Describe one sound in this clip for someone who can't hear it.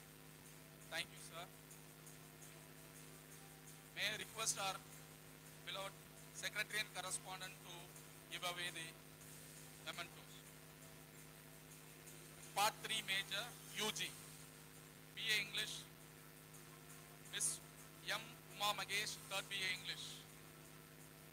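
A man speaks into a microphone over a loudspeaker, in short bursts.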